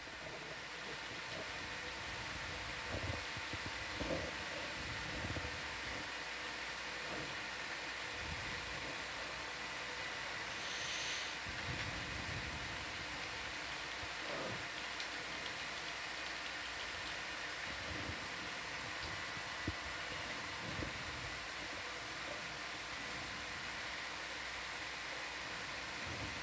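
A hydraulic robotic arm hums steadily.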